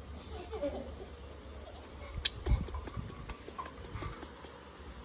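Fabric rustles as a baby monkey squirms.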